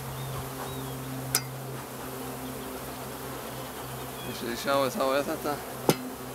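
A bee smoker puffs in short bursts.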